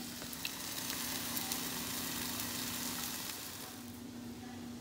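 Food sizzles in a hot frying pan.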